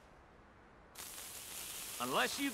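A lit fuse hisses and sizzles.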